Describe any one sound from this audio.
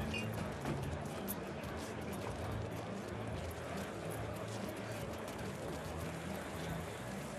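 Music with a steady beat plays.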